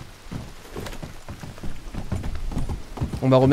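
Horse hooves clop on wooden boards.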